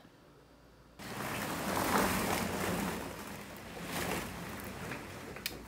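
A door handle rattles and a door opens.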